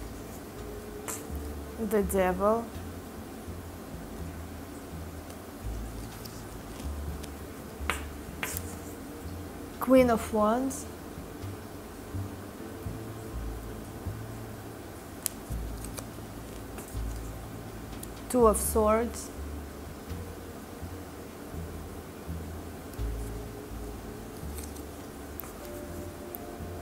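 Playing cards tap and slide softly on a cloth-covered surface.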